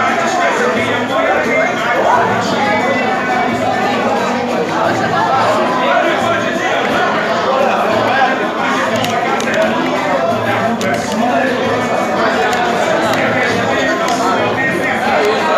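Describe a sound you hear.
A crowd of men chatter loudly all around.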